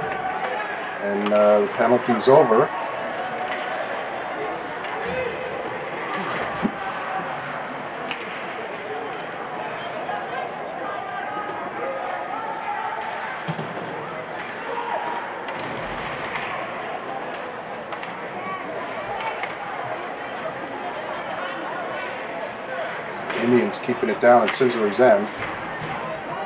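Spectators cheer and shout in an echoing rink.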